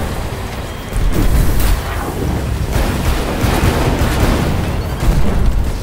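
A heavy gun fires loud booming shots.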